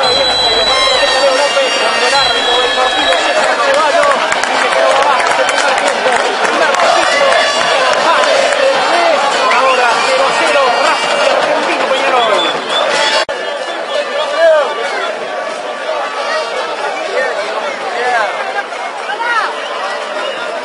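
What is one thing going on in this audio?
A large crowd of fans chants and cheers loudly outdoors.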